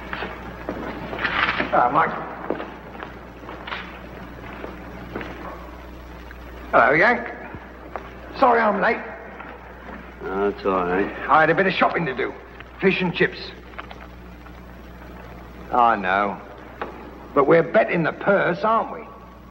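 A man speaks cheerfully and loudly.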